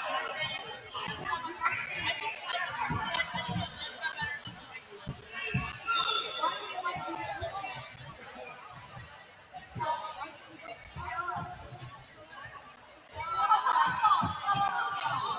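Young women on a team chatter and cheer loudly in a large echoing gym.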